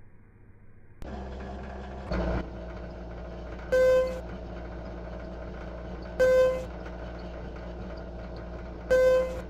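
An elevator motor hums steadily.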